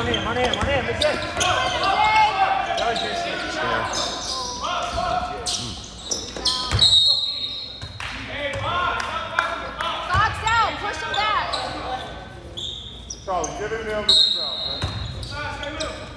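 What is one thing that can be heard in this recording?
Teenage boys call out to each other during play.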